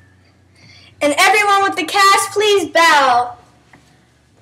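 Young girls sing loudly and high-pitched close by.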